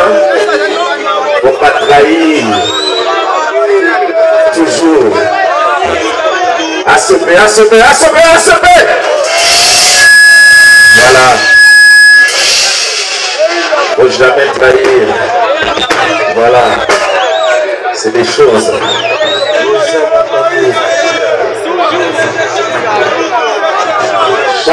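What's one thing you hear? A man sings loudly through a microphone and loudspeakers.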